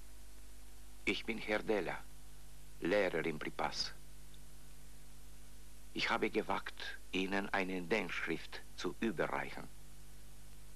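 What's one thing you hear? A man speaks calmly in a quiet room, close by.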